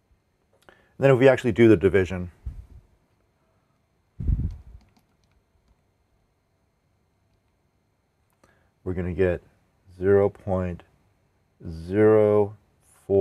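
A man speaks calmly and explains, close to a microphone.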